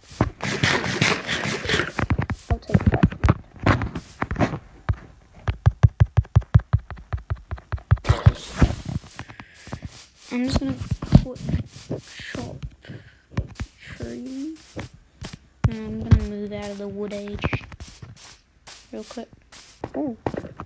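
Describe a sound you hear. Footsteps crunch quickly over grass.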